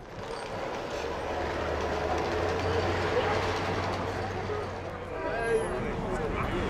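An elevated train rumbles past.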